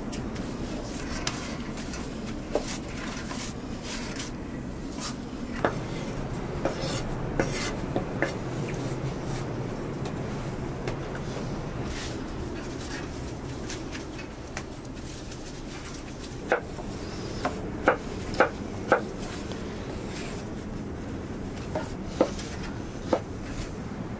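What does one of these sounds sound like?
Hands knead and pat soft dough.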